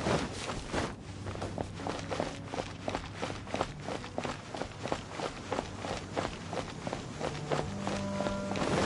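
Quick footsteps tap on stone paving.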